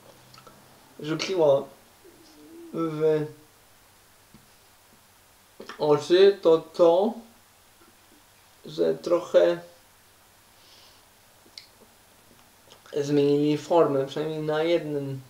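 A young man talks animatedly and close by, in bursts with pauses.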